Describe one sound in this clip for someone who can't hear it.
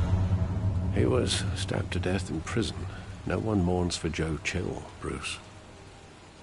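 An elderly man speaks gravely, close by.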